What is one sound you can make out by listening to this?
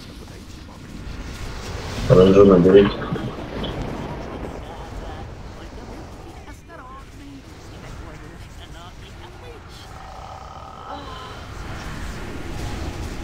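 Spells whoosh and crackle in a video game battle.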